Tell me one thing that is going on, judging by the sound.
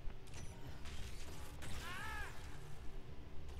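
A crackling electric blast bursts.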